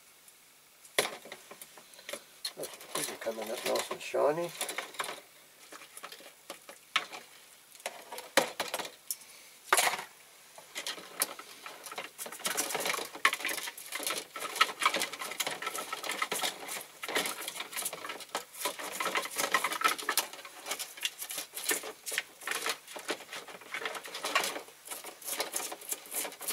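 A metal tool scrapes and clinks against a plastic tub.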